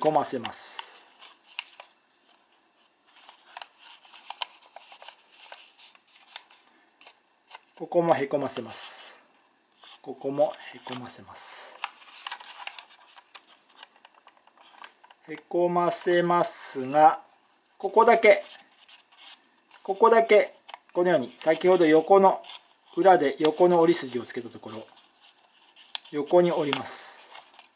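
Stiff paper crinkles and creases softly under fingers.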